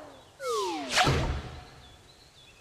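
A soft thud sounds as something lands on the ground.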